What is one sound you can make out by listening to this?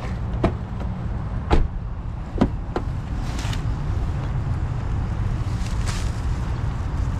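A car door swings shut with a thud.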